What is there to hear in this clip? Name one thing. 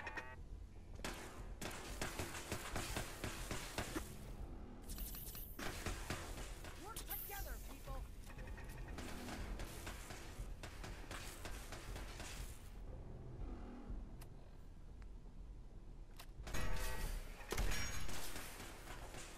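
Laser beams zap and crackle in rapid bursts.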